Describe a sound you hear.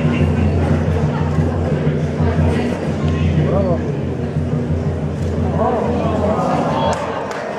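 A crowd of onlookers murmurs and chatters outdoors.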